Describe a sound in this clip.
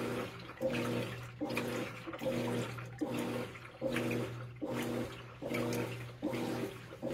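A washing machine motor hums steadily.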